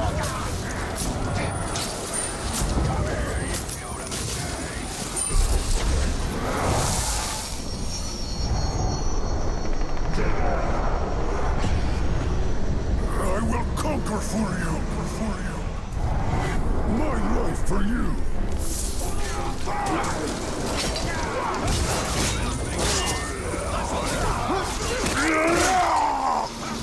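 Heavy blows thud against armour.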